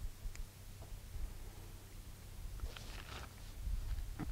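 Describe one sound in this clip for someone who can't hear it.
Metal parts of a small revolver click as it is handled.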